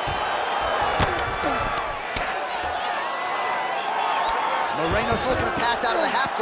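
Punches land with heavy thuds on a fighter's body.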